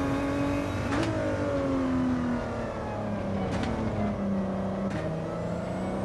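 Gear shifts crack sharply.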